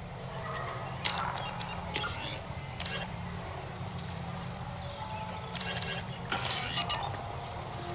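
Electronic menu sounds click and chirp as options are selected.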